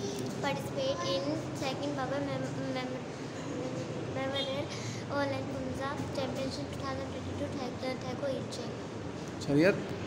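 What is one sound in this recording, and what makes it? A young girl speaks calmly and close by.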